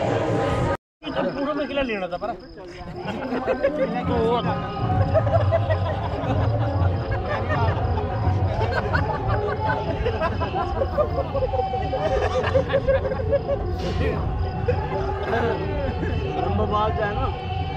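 Several men talk and laugh loudly close by.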